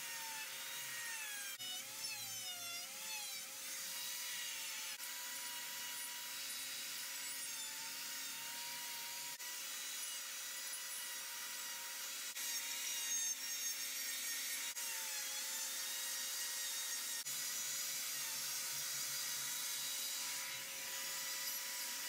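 A small rotary tool whines steadily as it grinds wood, its pitch dipping now and then under load.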